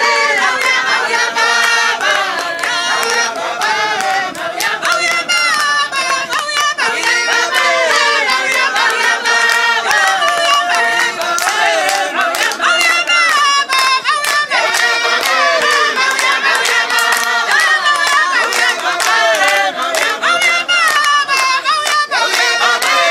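A crowd of men and women sings together outdoors.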